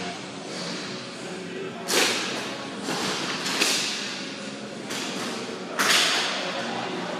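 Plastic wheels roll and scrape on a hard floor in a large echoing hall.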